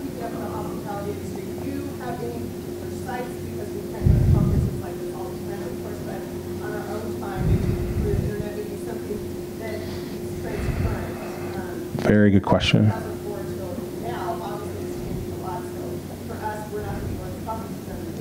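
A man speaks calmly into a microphone, heard through loudspeakers in a large room.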